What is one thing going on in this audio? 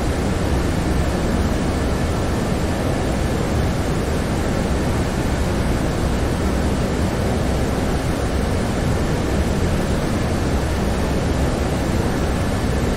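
Jet engines drone steadily, heard from inside an aircraft.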